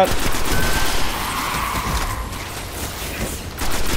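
An electric arc crackles and zaps.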